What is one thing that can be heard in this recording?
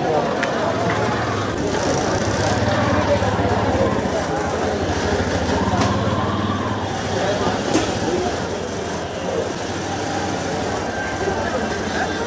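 Men and women talk in a busy street.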